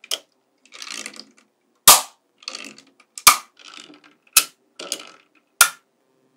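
Small steel magnetic balls rattle and slide against each other.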